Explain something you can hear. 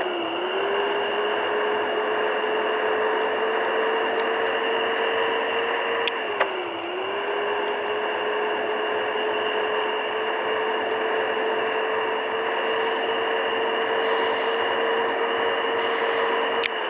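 A bus engine drones steadily, briefly dropping in pitch as it shifts gear.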